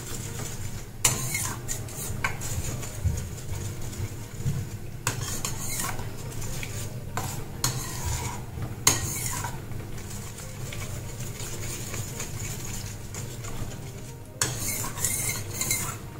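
A spatula scrapes against a metal pan.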